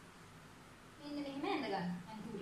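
A woman speaks clearly and calmly close by.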